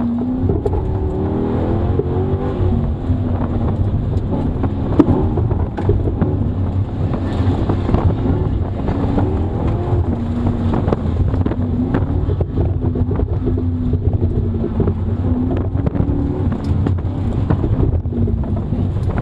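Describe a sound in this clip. A car engine roars and revs up and down from inside the cabin.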